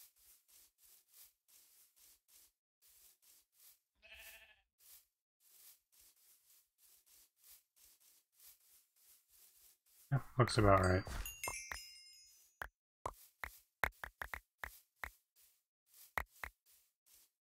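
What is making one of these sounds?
Footsteps tread steadily and softly on grass.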